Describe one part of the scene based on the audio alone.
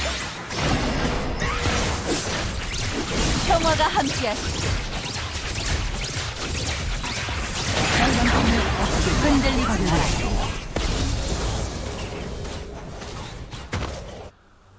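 Game spell effects whoosh and crackle in a busy fight.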